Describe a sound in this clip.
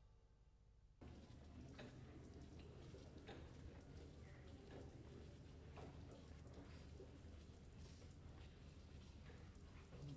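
Trolley wheels rumble along a hard floor.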